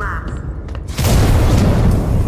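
A flamethrower blasts fire in bursts.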